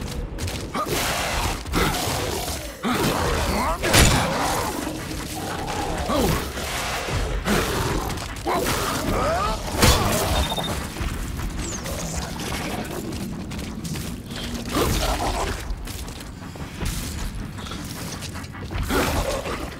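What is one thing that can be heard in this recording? Monsters shriek and growl.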